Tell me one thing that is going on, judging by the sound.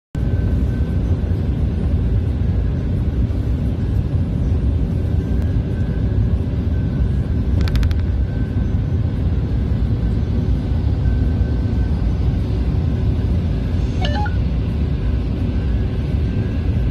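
A vehicle engine rumbles steadily from inside the cab.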